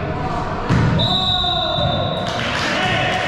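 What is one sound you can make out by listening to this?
A referee's whistle blows one long, steady blast.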